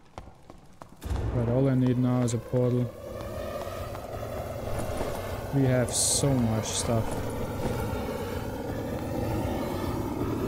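Jets of fire roar steadily.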